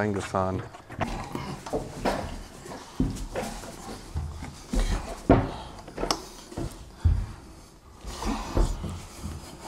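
Heavy objects knock and thump as men set them in place.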